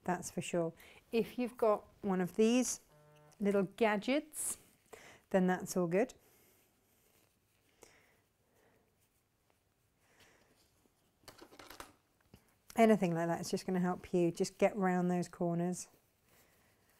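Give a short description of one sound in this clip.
A woman talks calmly and clearly close to a microphone.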